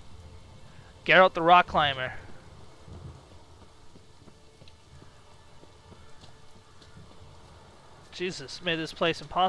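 Footsteps run quickly over stone and gravel.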